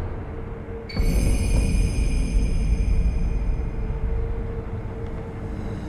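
A bright, ringing chime sounds and slowly fades.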